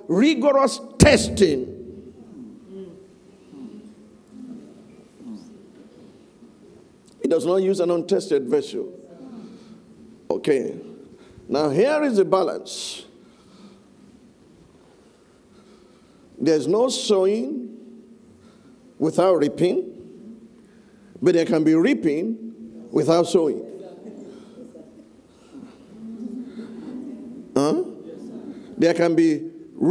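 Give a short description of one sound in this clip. An elderly man speaks with animation through a microphone in a large echoing hall, pausing between phrases.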